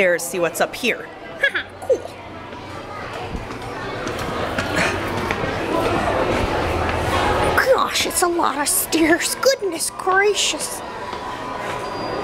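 Footsteps thud on stairs nearby.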